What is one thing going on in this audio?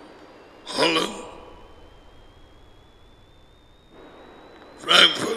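A middle-aged man speaks calmly and close into a headset microphone.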